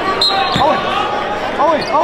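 A young man shouts and calls out to teammates.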